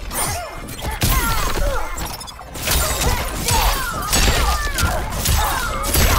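Magic effects crackle and whoosh.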